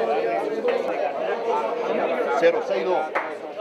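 Several men talk nearby.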